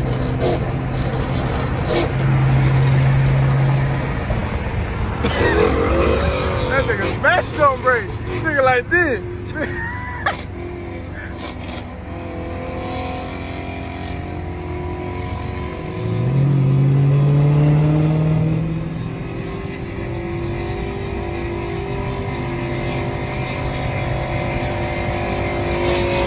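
Tyres roar on the road.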